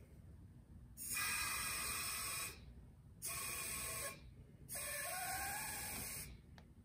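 Compressed air hisses in short bursts from a tyre inflator on a valve.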